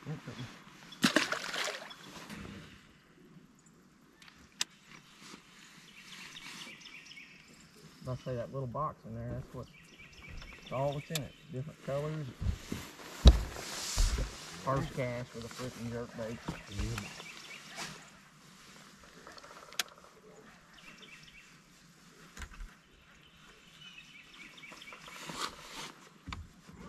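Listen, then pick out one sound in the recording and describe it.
A fishing reel clicks and whirs as line is cast and reeled in.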